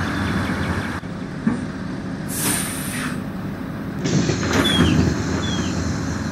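A bus engine idles with a low hum.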